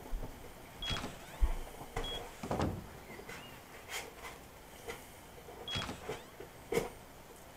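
A wooden door creaks open.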